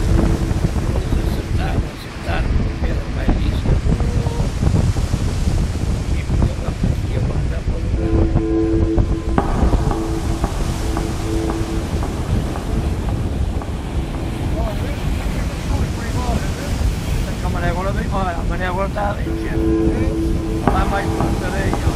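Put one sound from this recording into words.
Heavy surf roars and crashes steadily close by.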